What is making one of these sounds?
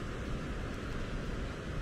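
A palette knife scrapes paint on a palette.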